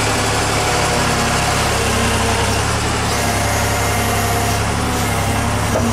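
Snow crunches as a digger's bucket pushes through it.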